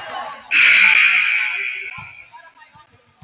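A crowd cheers loudly in a large echoing gym.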